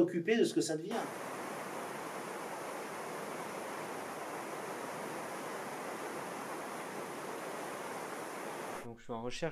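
Rushing water churns and splashes steadily.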